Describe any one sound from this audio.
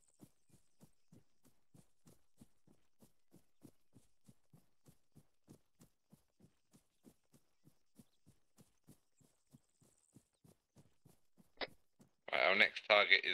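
Footsteps run steadily through tall grass.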